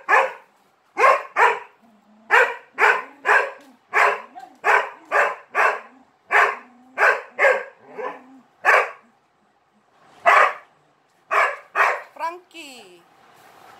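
A dog barks sharply again and again, close by.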